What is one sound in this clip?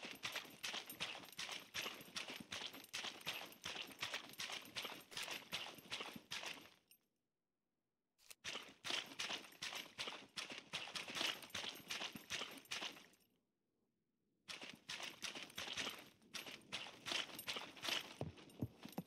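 Quick footsteps run over dirt and gravel.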